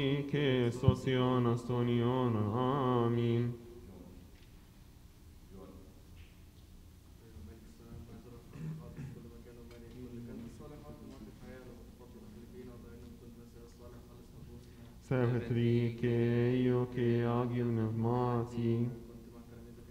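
Male voices chant together in a large echoing hall.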